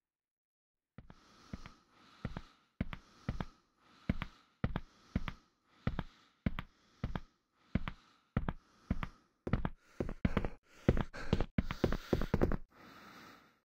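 Footsteps thud steadily on a hard floor, coming closer.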